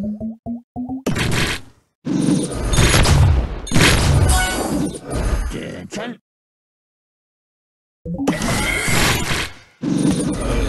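Game sound effects burst and chime as pieces match and explode.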